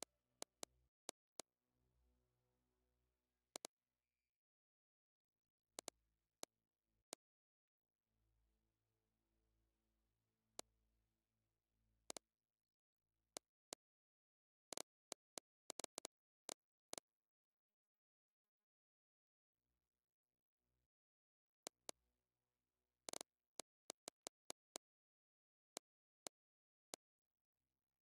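Short sharp menu clicks sound again and again.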